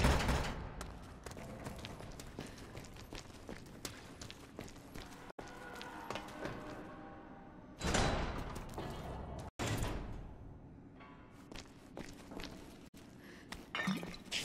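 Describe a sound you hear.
Footsteps crunch over rubble and debris.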